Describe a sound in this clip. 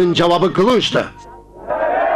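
An elderly man speaks loudly and forcefully.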